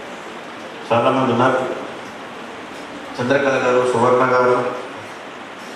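A man speaks into a microphone in short phrases, heard through a loudspeaker.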